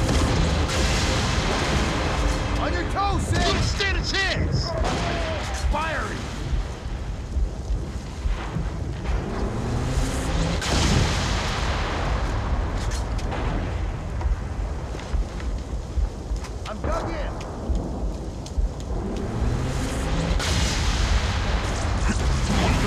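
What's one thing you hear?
Gunfire crackles in a video game.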